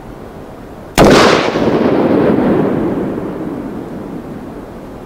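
A single gunshot cracks loudly and echoes away outdoors.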